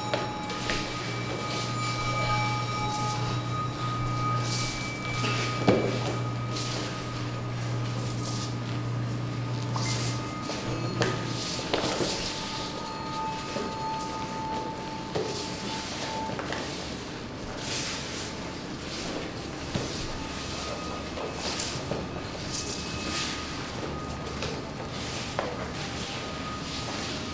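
Bare feet thump and slide on a stage floor.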